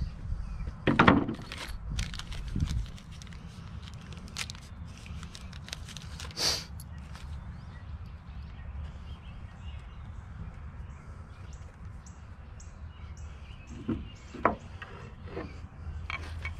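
Wooden pieces knock and clatter against a wooden board.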